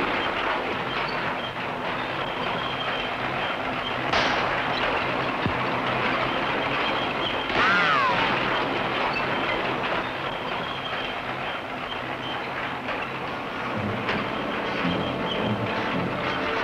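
A bulldozer engine rumbles and clatters nearby.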